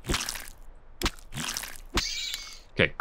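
A game character swings a tool with a short whoosh.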